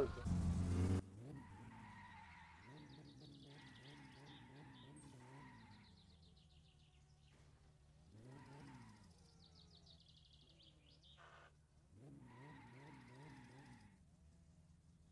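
A car engine revs hard in repeated bursts.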